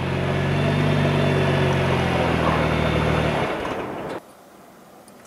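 A car engine idles with a deep exhaust rumble close by.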